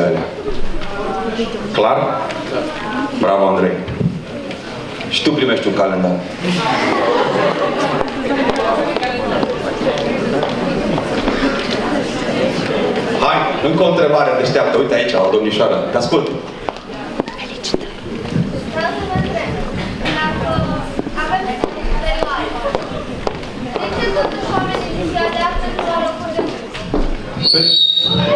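A man speaks with animation into a microphone through loudspeakers in a large echoing hall.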